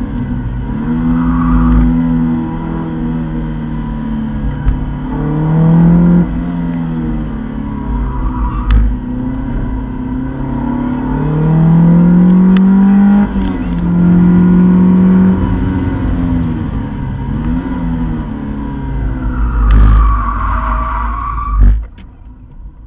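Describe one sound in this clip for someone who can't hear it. A naturally aspirated 2.2-litre four-cylinder sports car engine revs hard through the gears, heard from inside the cabin.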